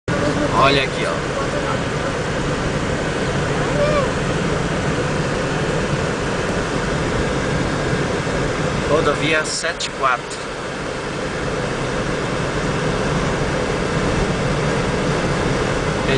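A car engine hums and tyres roll steadily on the road from inside the car.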